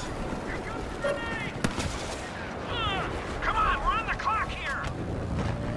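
Blaster shots zap in quick bursts.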